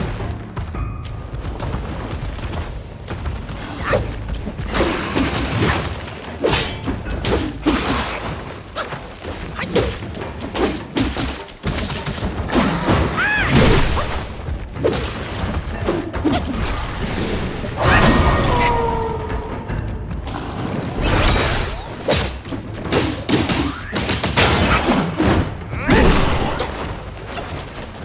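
A staff whooshes and strikes in quick blows.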